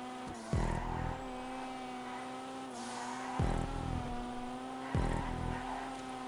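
Tyres squeal as a car slides through bends.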